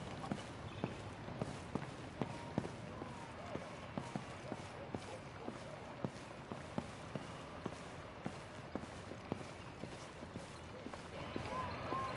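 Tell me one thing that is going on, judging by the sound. Footsteps walk at an even pace on an indoor floor.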